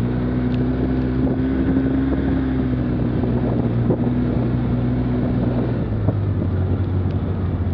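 Tyres bump and crunch over a dirt trail.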